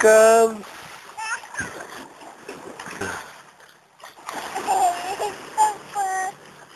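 Water splashes as a child swims.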